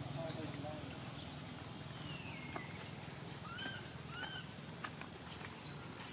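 A baby monkey scrabbles against tree bark as it climbs.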